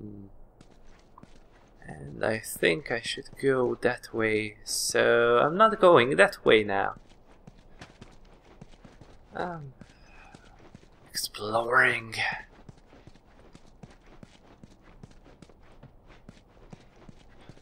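Footsteps shuffle softly over a gritty floor.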